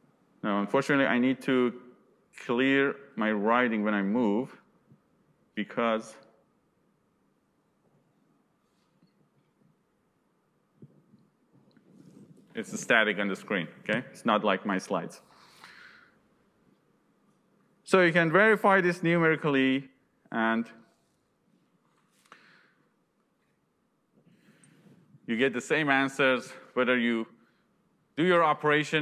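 A young man lectures calmly through a microphone, pausing between phrases.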